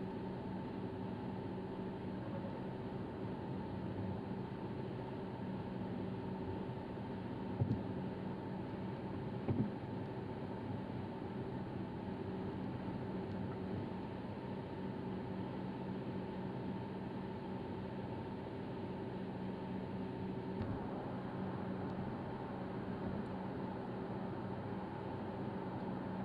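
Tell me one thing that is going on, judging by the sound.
Tyres roll and rumble on the road surface.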